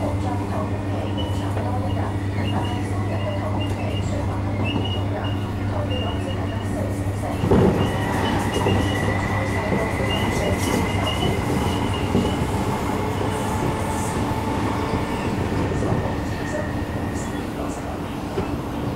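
A train hums and rumbles steadily along the tracks, heard from inside.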